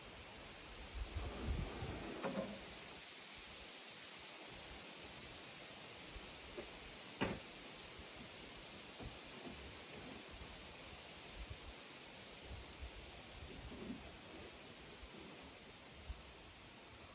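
Wood knocks and thumps sharply now and then.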